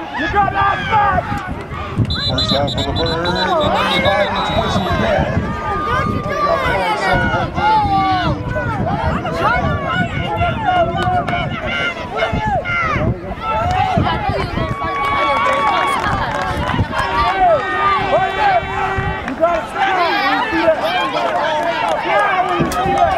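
A crowd of adults and children shouts and cheers excitedly nearby, outdoors.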